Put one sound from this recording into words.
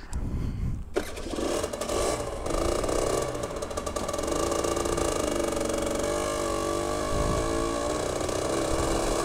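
A motorcycle engine starts and runs with a steady hum.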